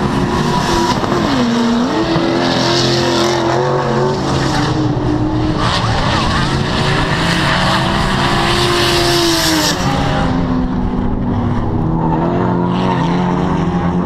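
Tyres screech on the track.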